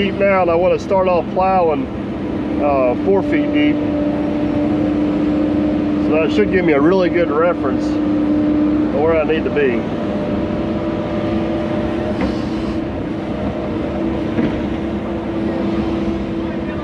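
An excavator engine hums steadily close by.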